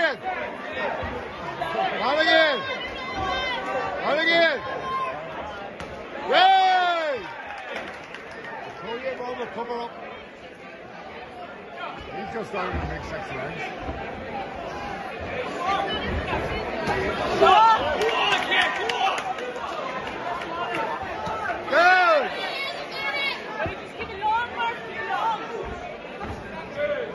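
Men in a crowd shout encouragement at ringside.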